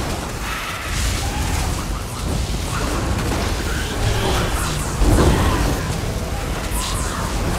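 Heavy magical blasts boom and rumble.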